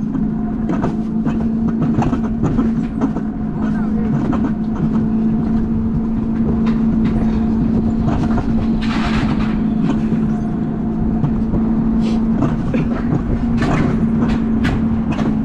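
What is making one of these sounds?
Wheels rumble and rattle loudly along a metal coaster track.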